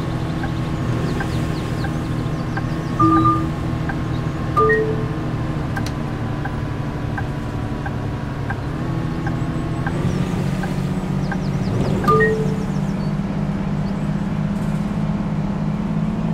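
A bus engine drones steadily, its pitch rising a little partway through.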